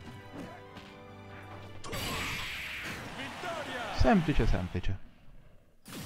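Video game fighting effects whoosh and crash loudly.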